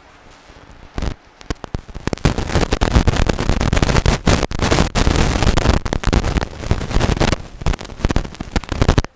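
Paper rustles close to a microphone.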